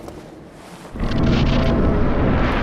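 A deep rushing whoosh swells loudly.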